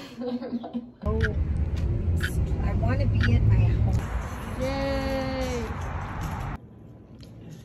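A car engine rumbles from inside a moving car.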